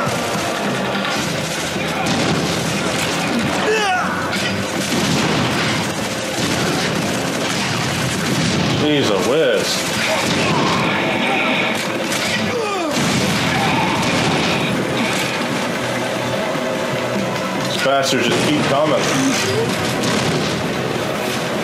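A heavy gun fires rapidly.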